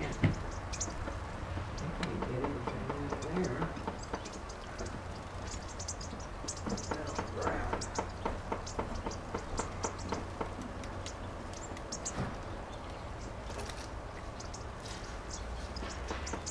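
Small birds splash and flutter in shallow water.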